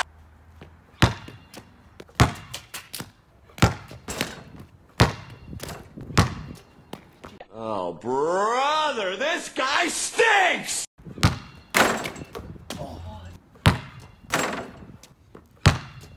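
A basketball bounces sharply on hard pavement outdoors.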